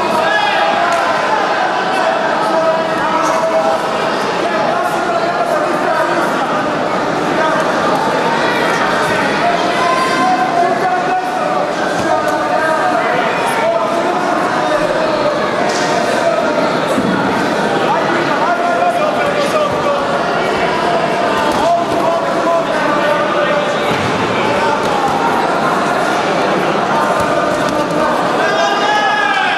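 A crowd chatters and shouts throughout a large echoing hall.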